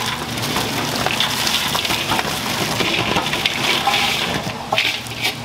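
Dried fish rustle and clatter as they are poured into a metal basket.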